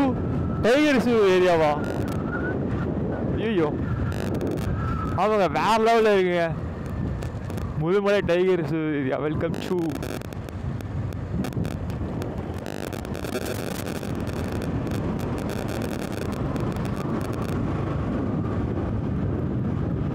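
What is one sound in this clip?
A motorcycle engine hums and rises and falls in pitch as it changes speed.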